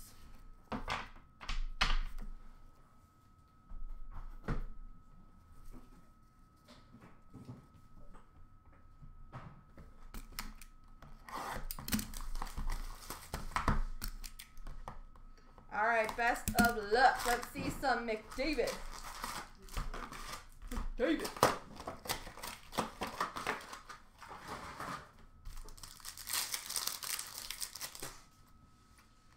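Plastic wrappers crinkle and rustle as packs are handled.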